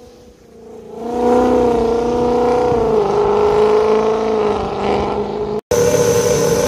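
A car engine revs loudly in the distance and slowly fades.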